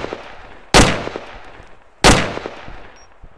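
Gunshots ring out loudly, echoing outdoors.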